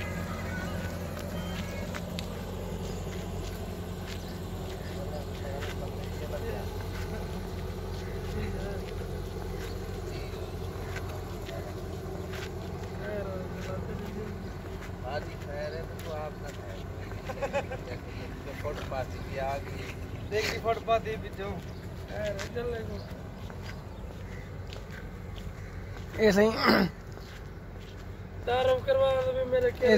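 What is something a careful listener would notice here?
Footsteps scuff on asphalt.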